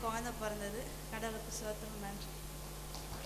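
A young woman speaks with emotion through a microphone, her voice carried over loudspeakers.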